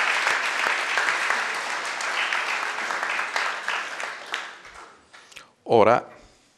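An audience applauds in a large hall, then the applause fades away.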